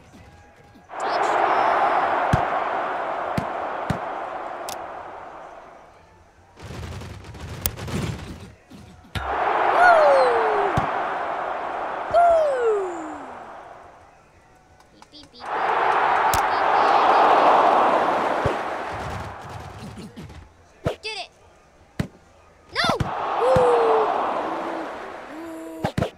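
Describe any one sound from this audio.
A crowd roars and cheers loudly in waves.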